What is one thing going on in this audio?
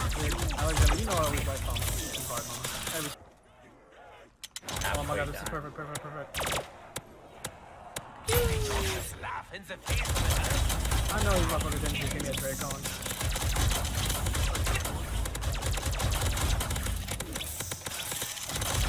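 Zombies snarl and groan.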